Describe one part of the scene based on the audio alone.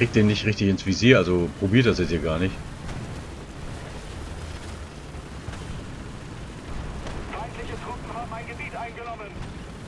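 A vehicle engine rumbles low and steady.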